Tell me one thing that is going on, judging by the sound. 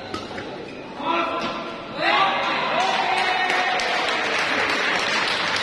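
Men shout and cheer loudly in an echoing hall.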